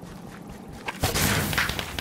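A shot fires with a sharp crackling bang.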